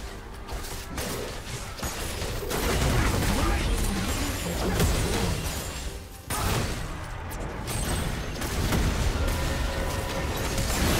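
Spell effects crackle and whoosh in a fast game fight.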